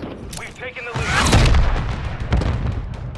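A short game victory jingle plays loudly.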